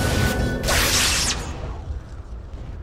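Magic spells burst and crackle in a fantasy battle.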